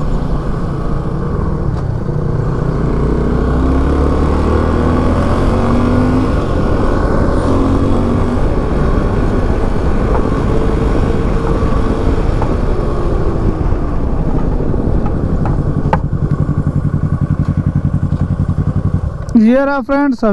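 A motorcycle engine hums steadily on the move.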